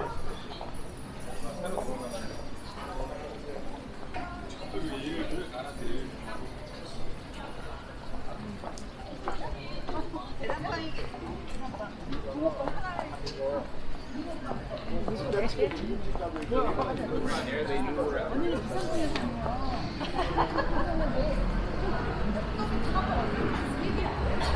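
Footsteps tap on pavement close by.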